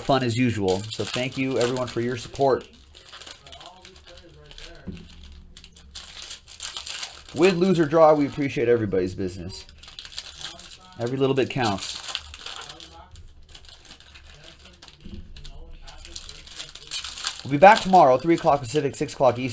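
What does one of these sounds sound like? Foil card packs crinkle as hands tear them open.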